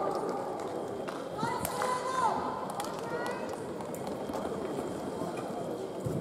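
Footsteps tread on a hard floor in a large echoing hall.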